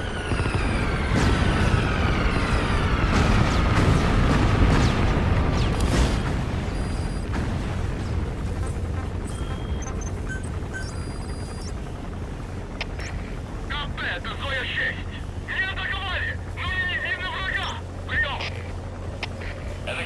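A helicopter's rotor thumps steadily overhead.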